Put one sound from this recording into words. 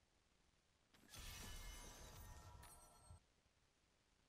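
A deep rumbling blast rings out with bright chiming tones.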